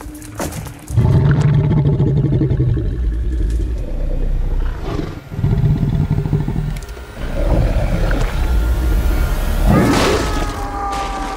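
A large creature growls deeply and loudly close by.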